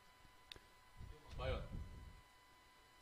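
A second young man speaks quietly into a microphone.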